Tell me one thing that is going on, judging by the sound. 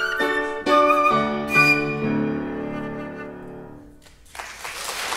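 A piano plays chords beneath a flute.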